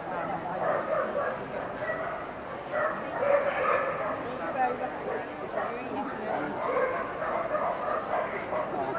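Men, women and children chatter all around.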